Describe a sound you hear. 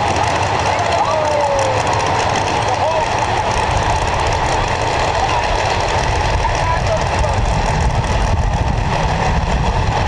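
Drag racing engines idle with a loud, rough rumble that grows heavier.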